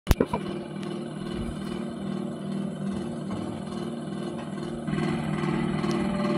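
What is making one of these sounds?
An oil pump jack's engine chugs steadily in a low, rhythmic thrum.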